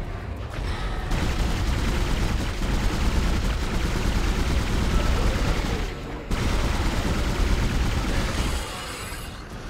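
A futuristic gun fires in rapid, buzzing bursts.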